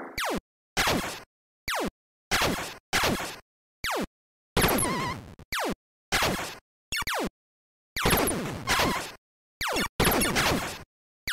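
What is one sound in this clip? Game explosions burst with crackling noise.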